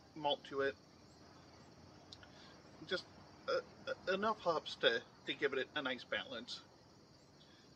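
A man speaks calmly and casually close by, outdoors.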